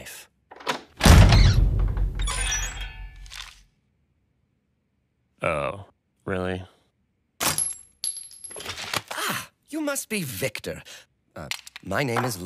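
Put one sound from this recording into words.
A deep-voiced man grunts and speaks gruffly, close by.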